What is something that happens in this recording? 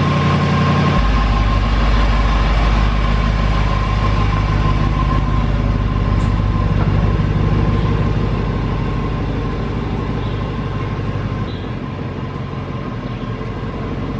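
A car engine rumbles as the car pulls slowly away and fades into the distance.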